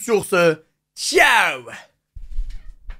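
A young man lets out a high, gliding exclamation.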